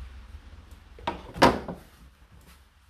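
A plastic lint filter clatters against a tumble dryer's door rim.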